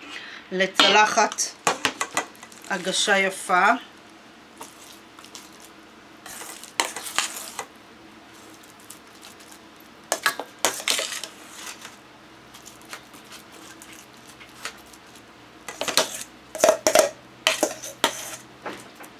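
A metal spoon clinks and scrapes against a steel pot.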